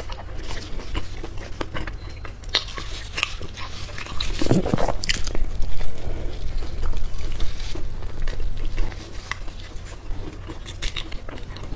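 Flaky pastry crackles as hands tear it apart close to a microphone.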